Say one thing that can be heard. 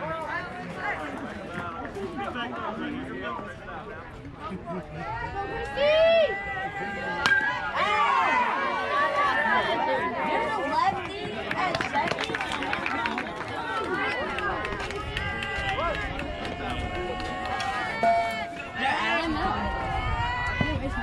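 A crowd of children and adults cheers and shouts outdoors.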